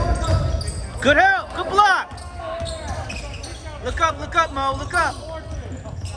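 Basketball shoes squeak sharply on a gym floor.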